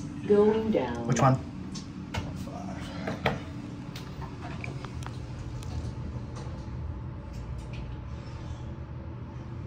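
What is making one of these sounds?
An elevator hums low and steadily.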